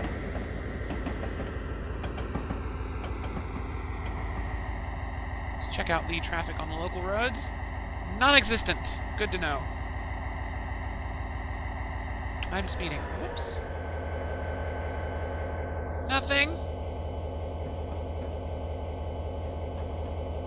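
A train's diesel engine rumbles steadily.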